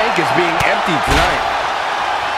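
A body slams down onto a wrestling mat with a heavy thud.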